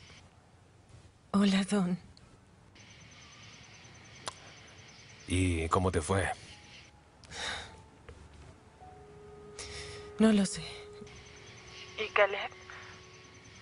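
A woman speaks softly on a phone.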